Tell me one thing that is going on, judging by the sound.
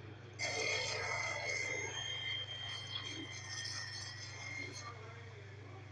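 An energy crackles and hums with a bright ringing tone.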